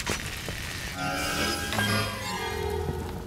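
Short electronic beeps sound in quick succession.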